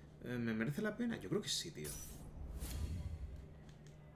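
Swords clash and slash in a video game fight.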